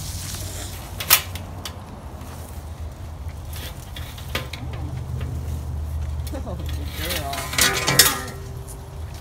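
A metal sliding door rattles and clanks shut.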